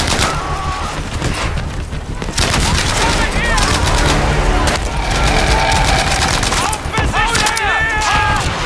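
Explosions boom and rumble in the distance.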